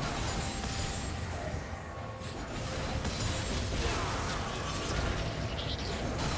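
Hits land with sharp impacts.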